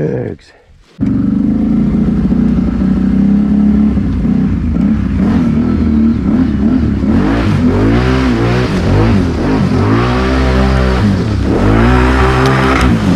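A quad bike engine roars steadily as the bike drives along.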